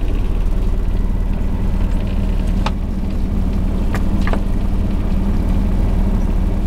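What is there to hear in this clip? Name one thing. A small boat's engine chugs.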